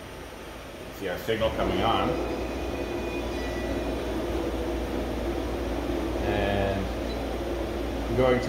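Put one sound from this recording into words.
A machine starts up and hums steadily.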